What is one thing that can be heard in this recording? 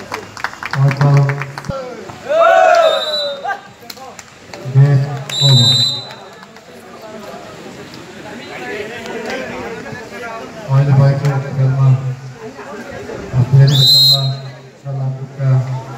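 A man talks loudly close by, outdoors.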